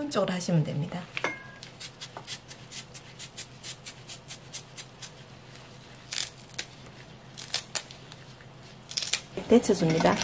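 Fibrous vegetable stalks snap and tear as they are peeled by hand.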